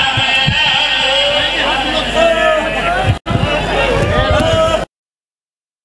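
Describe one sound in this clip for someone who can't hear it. A crowd of men chants loudly together.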